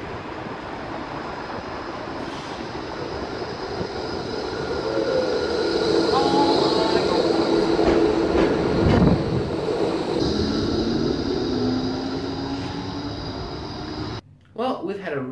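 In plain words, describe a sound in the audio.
A tram approaches and rolls past, rumbling and squealing on its rails.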